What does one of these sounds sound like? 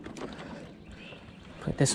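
A fish splashes briefly as it is lifted out of the water.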